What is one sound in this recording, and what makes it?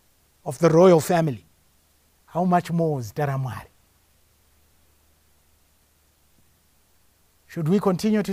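A man preaches with animation into a microphone, in short bursts with pauses.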